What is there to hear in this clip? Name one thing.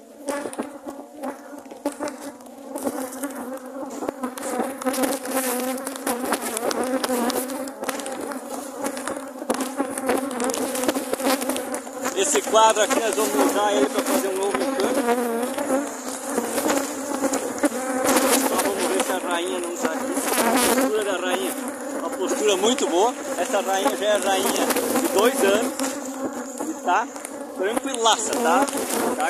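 A dense swarm of bees buzzes loudly and close by.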